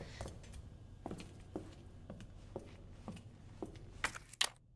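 Footsteps walk at an even pace across a hard floor.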